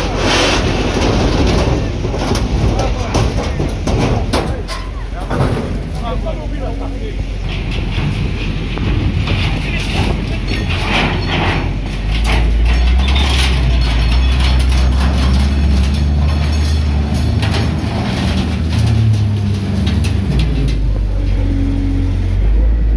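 A loader's diesel engine rumbles loudly nearby.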